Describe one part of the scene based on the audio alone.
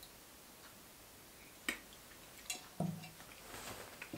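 A glass is set down on a wooden surface with a soft knock.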